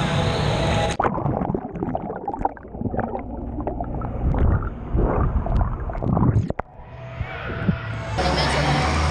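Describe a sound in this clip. Muffled underwater bubbling and swishing rises and falls.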